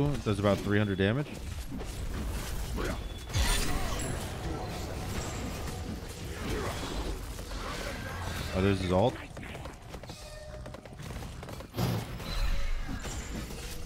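Game sounds of blows and spell effects clash.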